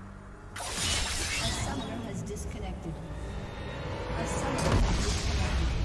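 Game sound effects of a fantasy battle clash and crackle.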